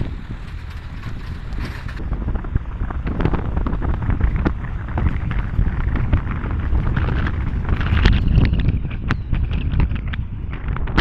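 Tyres crunch and rattle over a gravel road.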